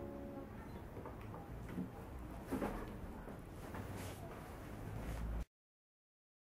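Soft knocks and rustles sound as a guitar is set down.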